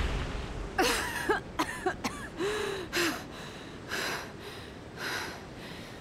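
A young woman grunts and gasps with effort.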